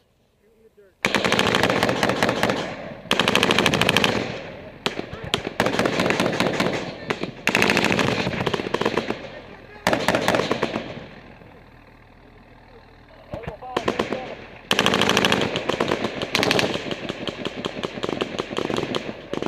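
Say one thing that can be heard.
Rifles fire in rapid bursts close by, echoing loudly outdoors.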